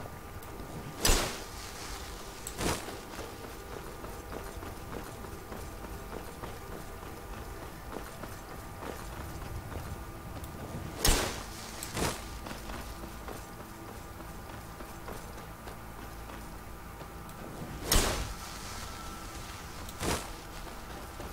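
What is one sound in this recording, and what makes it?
A magic spell bursts with a sharp whoosh as it is cast.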